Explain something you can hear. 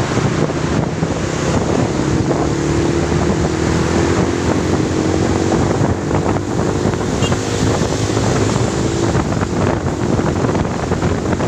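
A motorcycle engine hums steadily while riding along a road.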